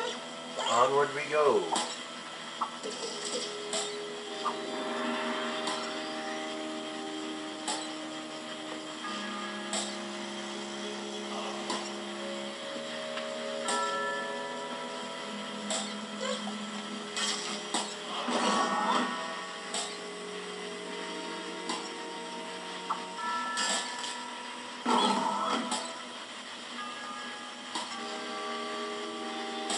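Game music plays with steady sustained notes.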